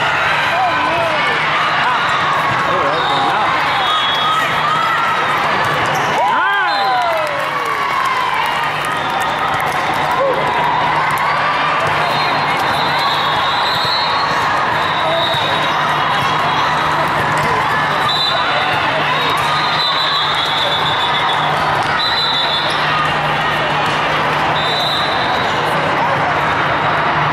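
Many voices of players echo loudly around a large indoor hall.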